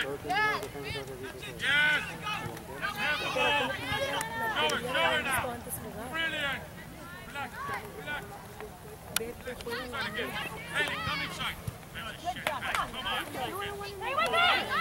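Young women shout and call out across an open field.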